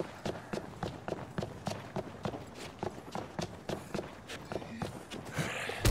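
Footsteps pad quickly along pavement.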